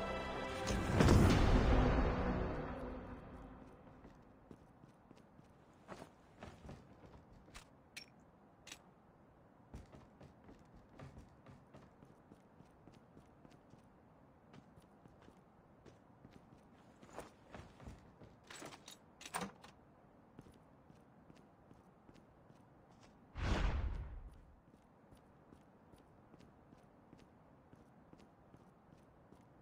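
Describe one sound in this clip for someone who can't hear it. Footsteps thud quickly over ground and wooden boards.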